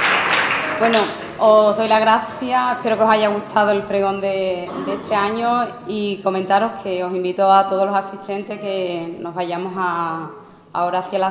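A young woman speaks clearly through a microphone.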